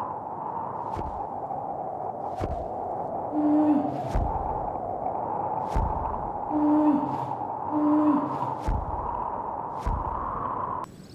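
Large wings beat with deep thumps.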